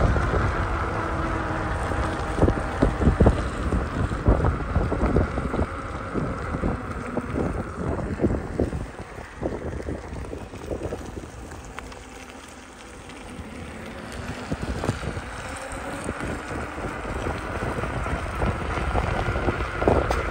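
An electric unicycle whines steadily as it rolls along.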